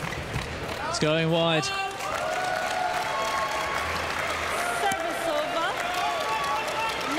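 A large crowd cheers and shouts loudly in a big echoing hall.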